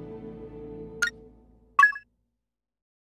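Short bright chimes ring twice.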